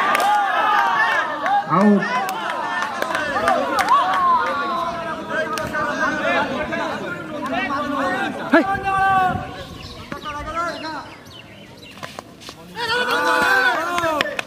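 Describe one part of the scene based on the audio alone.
Several young men shout and cheer loudly outdoors.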